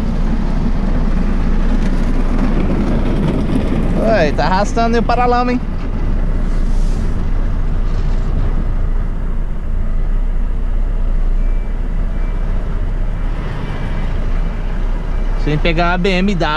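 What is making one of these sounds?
A truck engine hums steadily while the truck moves slowly.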